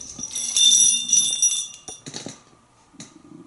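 A parrot whistles shrilly up close.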